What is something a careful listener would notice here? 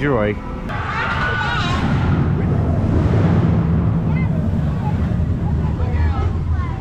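A roller coaster rumbles and roars along its track nearby.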